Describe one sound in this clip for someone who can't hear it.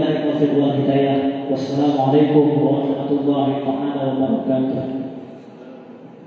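A group of men chant together in unison.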